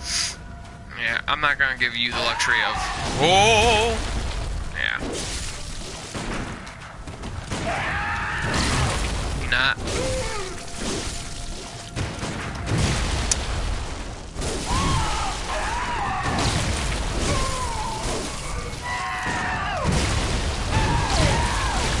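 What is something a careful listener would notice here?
Blades slash and strike with heavy impacts.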